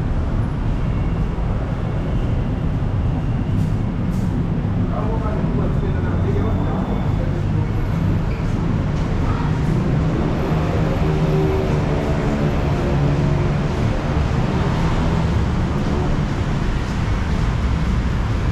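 A steady low rumble of wind buffets the microphone outdoors.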